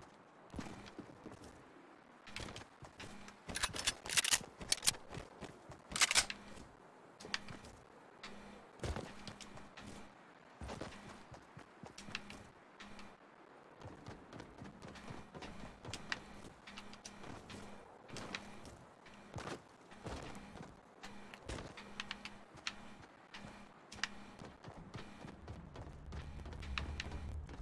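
Quick footsteps and clicks from a video game patter on.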